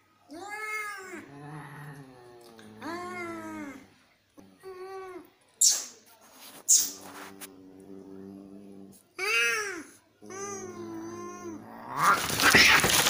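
Cats yowl and growl at each other up close.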